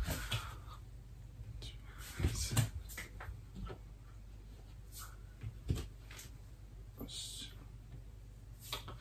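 Footsteps thud on a floor indoors.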